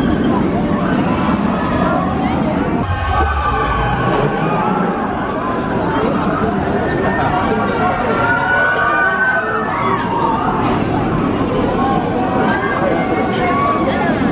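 Riders scream on a passing roller coaster.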